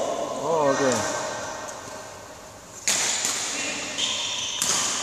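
Rackets smack shuttlecocks in a large echoing hall.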